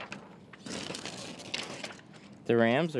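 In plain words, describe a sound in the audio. Thin plastic film crinkles and rustles as hands handle it.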